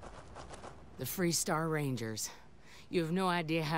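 A woman speaks warmly and with relief, close by.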